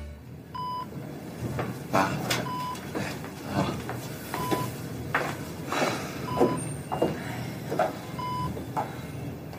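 A heart monitor beeps steadily at a slow, even pace.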